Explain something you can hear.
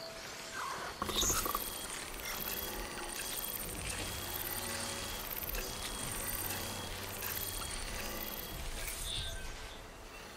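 An electric beam crackles and pulses in a quick, even rhythm.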